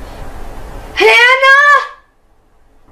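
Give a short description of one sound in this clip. A young boy shouts loudly close by.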